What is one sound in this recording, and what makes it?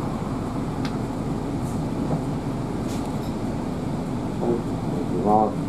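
A bus drives past.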